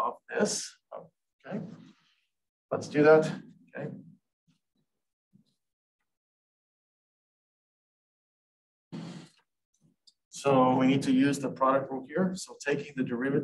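A man explains calmly and close by, pausing between phrases.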